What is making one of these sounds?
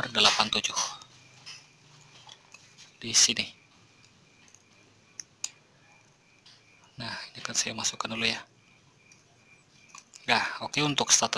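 Plastic wire connectors click and rattle as they are handled.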